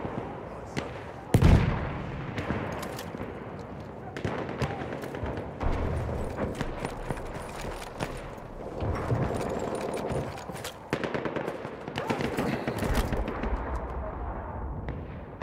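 Rapid gunfire crackles in bursts, with shots ringing out close by and far off.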